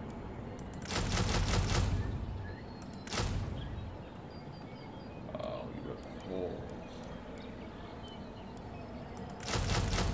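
Short game menu sounds play as units are picked.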